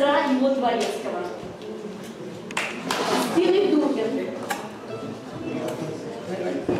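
A woman speaks aloud to a roomful of people, heard from across the room.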